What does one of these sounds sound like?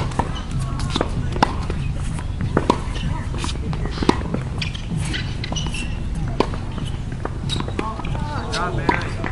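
Tennis balls are struck with sharp pops of a racket.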